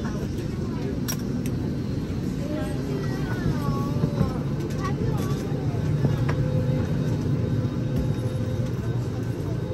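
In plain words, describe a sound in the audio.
A steady low hum of an aircraft cabin fills the air.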